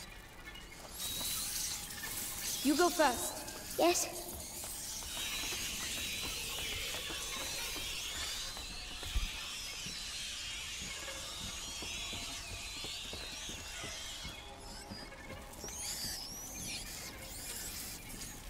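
Rats squeak in large numbers.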